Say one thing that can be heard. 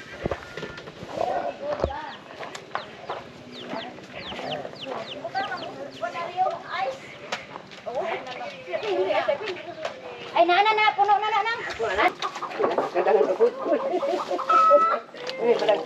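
Several adults chatter nearby.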